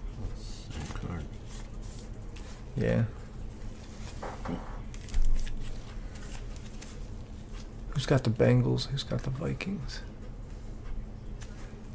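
Gloved hands handle a hard plastic card case, which clicks and knocks.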